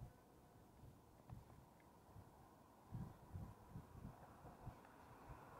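Wind buffets the microphone in low gusts.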